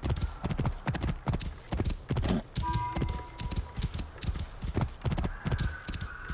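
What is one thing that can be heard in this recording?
A horse's hooves thud steadily on sand at a gallop.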